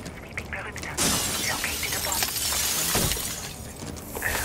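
Glass shatters and clatters.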